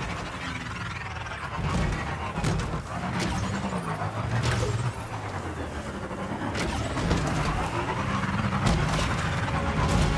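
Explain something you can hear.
A motorcycle engine revs and hums steadily.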